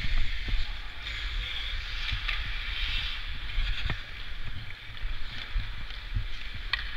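Skate blades scrape and hiss across the ice close by.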